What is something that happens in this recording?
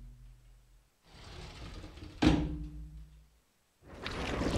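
A door thuds shut.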